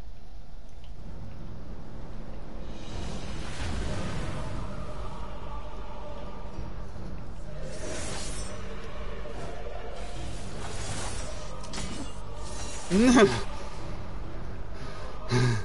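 A deep magical surge roars and rumbles, swelling in bursts.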